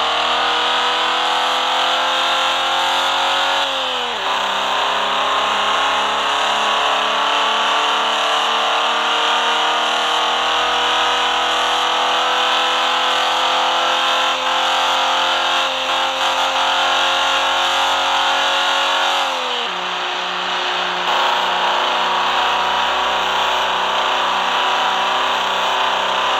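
Tyres hum steadily on the road.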